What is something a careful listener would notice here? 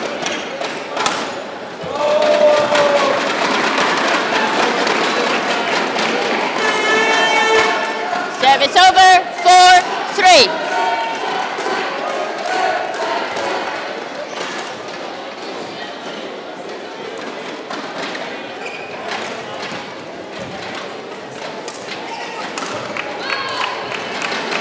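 A racket smacks a shuttlecock back and forth in a large echoing hall.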